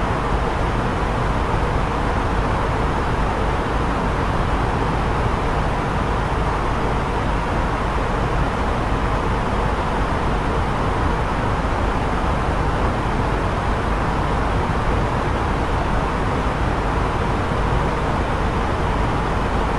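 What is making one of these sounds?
A jet airliner's engines and rushing air make a steady, deep drone.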